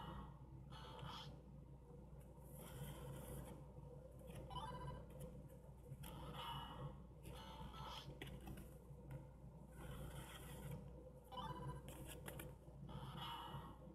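A plastic button clicks under a finger.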